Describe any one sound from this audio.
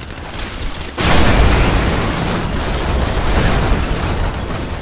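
A heavy explosion booms and rumbles away.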